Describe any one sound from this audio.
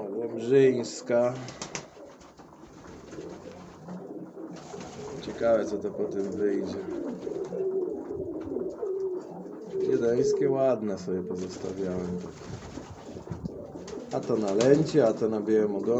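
Pigeon wings flap.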